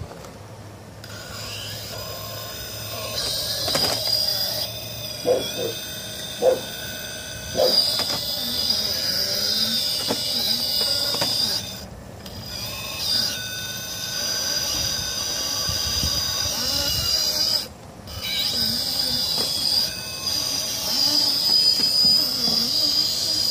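A small electric motor whines as a toy truck crawls along.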